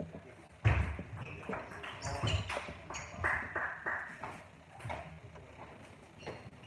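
Table tennis balls click and bounce on a hard floor in an echoing hall.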